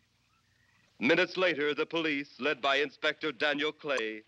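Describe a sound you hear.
A man speaks in a low, firm voice.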